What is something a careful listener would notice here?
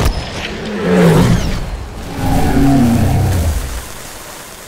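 A huge creature roars with a deep, rumbling bellow.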